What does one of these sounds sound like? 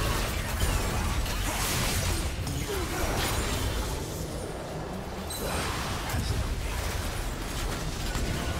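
Game spell effects whoosh and crackle in a fight.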